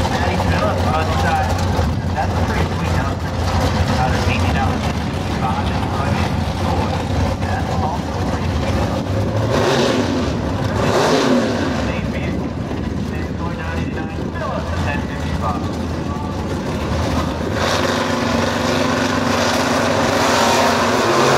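V8 muscle cars idle with a lumpy rumble.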